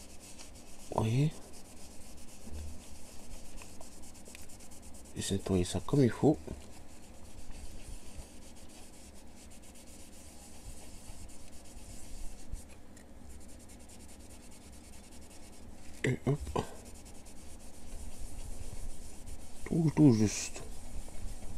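A cloth rubs softly against a circuit board.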